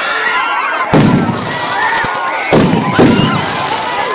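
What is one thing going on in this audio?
Fireworks explode with loud, sharp bangs.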